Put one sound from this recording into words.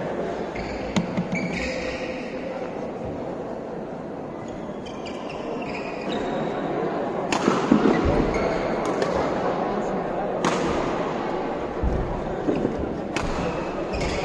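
A badminton racket strikes a shuttlecock in a large echoing hall.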